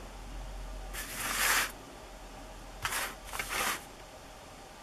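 Paper slides and scrapes across a tabletop.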